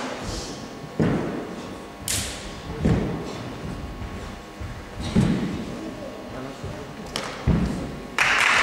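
Feet thump on a padded floor in a large echoing hall.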